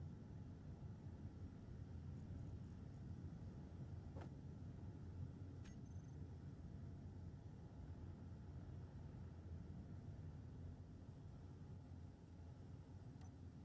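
A low, steady rumbling hum drones throughout.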